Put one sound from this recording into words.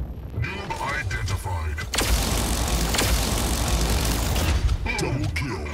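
Game guns fire in rapid bursts.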